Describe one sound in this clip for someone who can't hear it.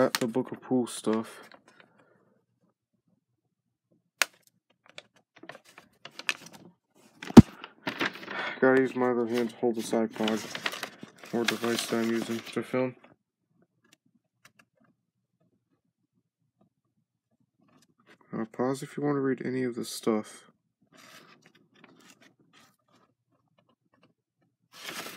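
A sheet of paper rustles and crinkles in a hand.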